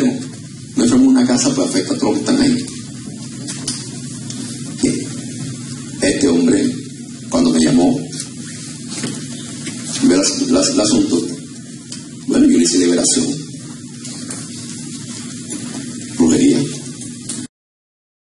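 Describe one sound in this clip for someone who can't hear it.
A man preaches loudly through a microphone and loudspeakers in an echoing room, in bursts with pauses.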